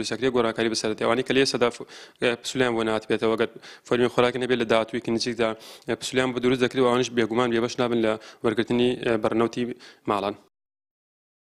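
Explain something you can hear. A young man speaks calmly and clearly into a microphone, close by.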